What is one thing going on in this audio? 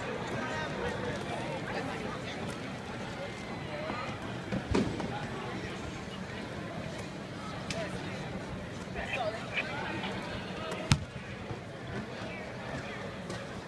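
People murmur and talk in the background.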